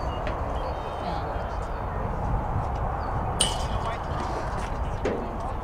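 Wind blows steadily across an open field outdoors.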